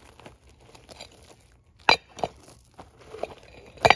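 A metal tool clanks against a steel ingot mould.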